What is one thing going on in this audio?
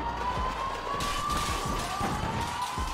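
Gunshots crack in an echoing space.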